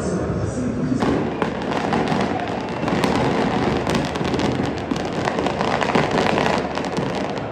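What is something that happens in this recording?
A crowd of fans cheers in a stadium.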